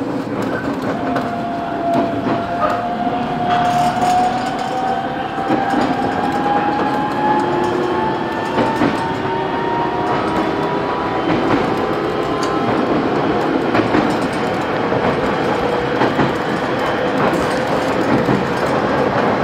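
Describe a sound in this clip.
A train's motor whines, slowly rising in pitch.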